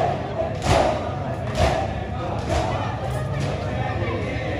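Men beat their chests with their hands in a slow, heavy rhythm.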